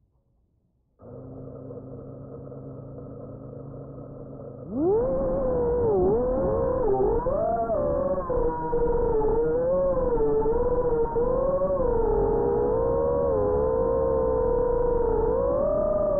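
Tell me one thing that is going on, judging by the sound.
Small drone motors hum steadily, then whine loudly with a wavering pitch as the drone flies.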